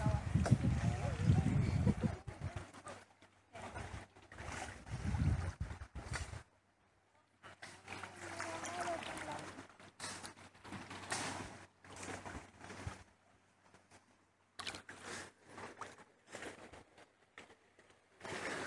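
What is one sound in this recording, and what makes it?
Water sloshes as people wade through it.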